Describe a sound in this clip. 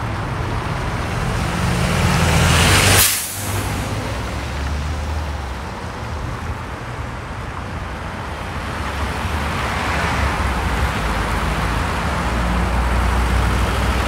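Cars drive past one after another.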